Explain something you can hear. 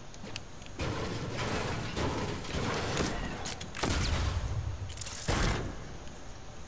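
A treasure chest creaks open with a shimmering chime.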